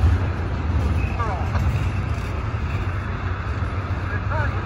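Steel wheels squeal briefly on the rails.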